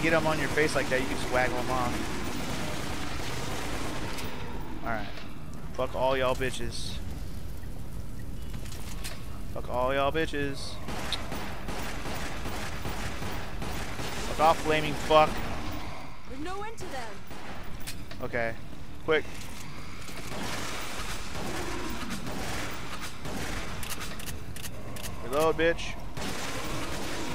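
Gunshots fire in bursts.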